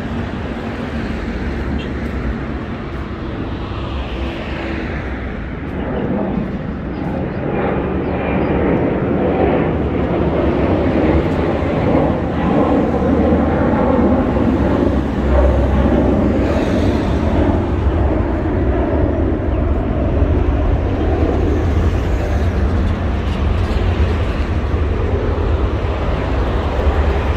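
Footsteps walk on a paved pavement.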